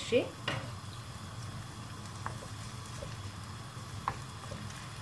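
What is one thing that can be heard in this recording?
Meat sizzles softly in a frying pan.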